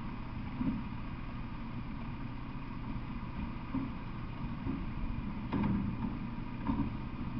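A truck engine idles nearby with a low, steady rumble.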